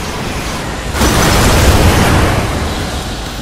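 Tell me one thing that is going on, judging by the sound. A chest bursts open with a loud rushing whoosh.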